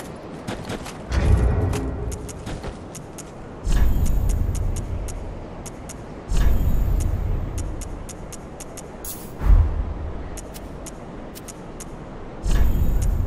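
Short menu clicks tick quickly, again and again.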